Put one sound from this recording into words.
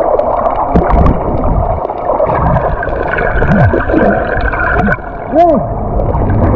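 Bubbles gurgle and pop as a swimmer kicks close by.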